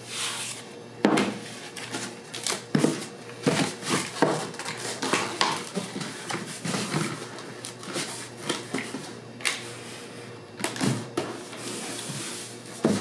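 Packing tape screeches as it is pulled off a dispenser.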